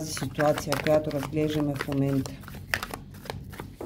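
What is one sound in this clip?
Playing cards shuffle and riffle softly in a person's hands.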